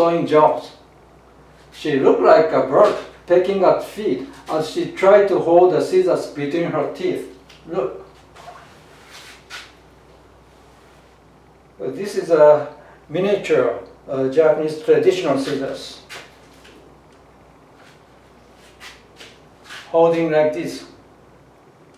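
An elderly man speaks calmly and with animation close by.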